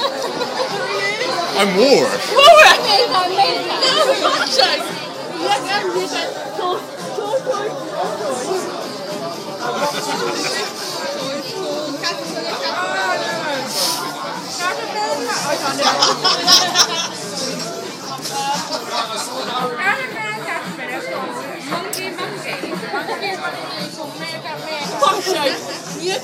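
Women talk loudly nearby.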